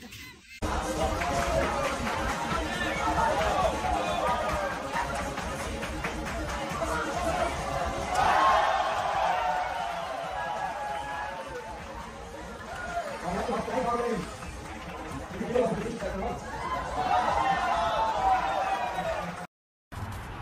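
A crowd of men and women laughs and cheers nearby.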